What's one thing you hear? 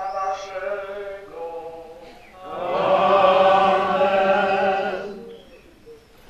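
A choir of men and women sings a slow hymn outdoors.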